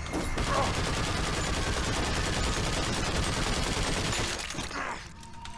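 Heavy gunfire blasts rapidly at close range.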